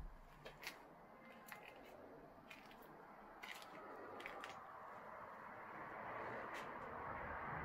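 Debris crunches and clatters underfoot as someone walks.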